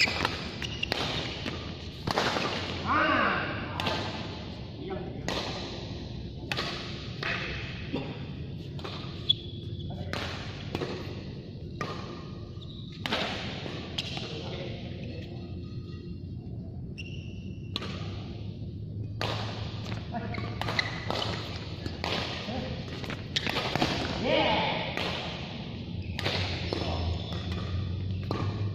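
Sports shoes squeak and scuff on a court floor.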